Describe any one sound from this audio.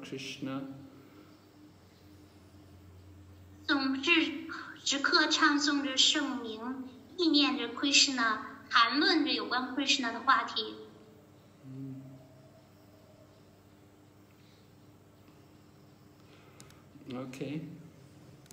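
An elderly man speaks calmly, close to a phone's microphone.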